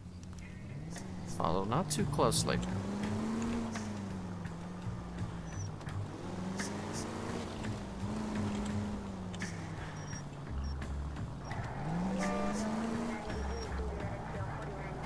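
A car engine starts and revs up and down as the car drives off.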